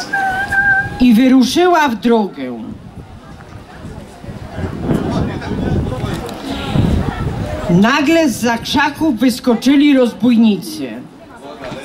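A man speaks with animation through loudspeakers outdoors.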